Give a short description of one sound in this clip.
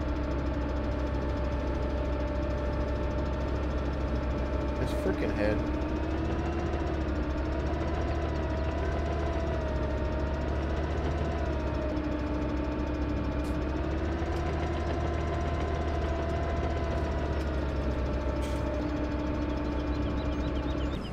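A heavy diesel engine rumbles and whines steadily, its pitch rising and falling as it works.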